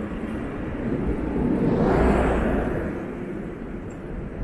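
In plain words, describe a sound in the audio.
A truck drives past close by with a loud engine rumble.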